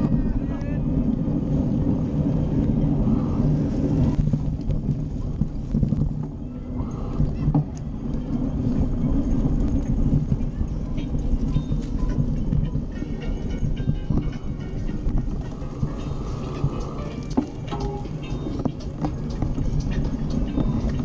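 Bicycle tyres roll and rattle over a rough path.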